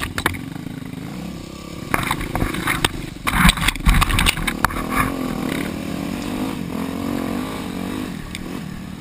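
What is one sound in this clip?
A dirt bike engine runs close by, its pitch rising and falling with the throttle.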